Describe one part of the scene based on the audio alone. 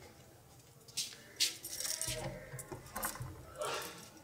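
A wooden door creaks and clicks open.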